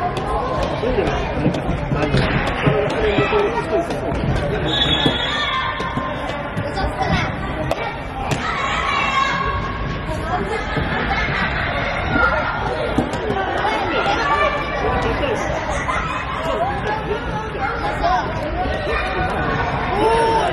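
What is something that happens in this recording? A futsal ball is kicked and thuds on a hard indoor floor.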